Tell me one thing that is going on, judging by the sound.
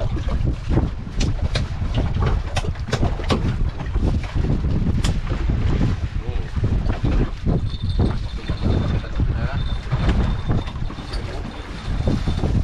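A man beats something with a wooden stick in sharp knocks.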